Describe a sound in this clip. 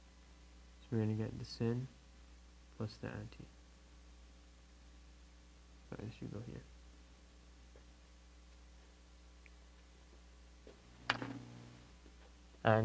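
A young man speaks calmly in short phrases, close by.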